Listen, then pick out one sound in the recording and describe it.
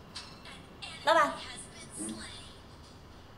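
A young woman exclaims loudly nearby.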